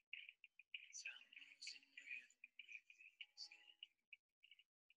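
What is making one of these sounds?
A woman speaks quietly over an online call.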